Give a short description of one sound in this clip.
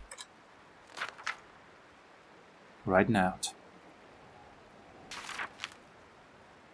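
Paper pages turn with a soft rustle.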